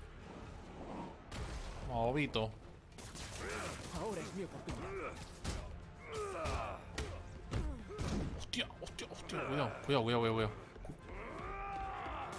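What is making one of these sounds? Punches and kicks land with heavy thuds in a video game brawl.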